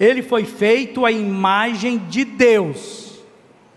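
A man speaks with animation into a microphone, his voice echoing slightly.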